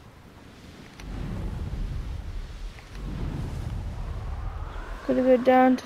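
Wind rushes past in a loud, deep roar.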